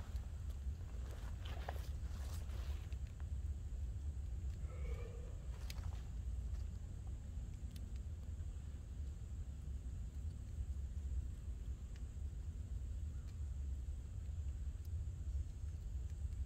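A man talks calmly outdoors close by.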